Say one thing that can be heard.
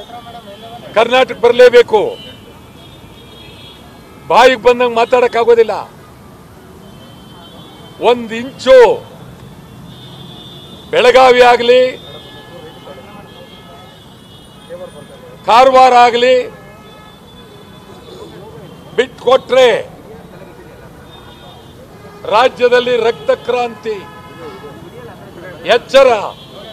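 A man speaks forcefully into microphones in short, loud bursts.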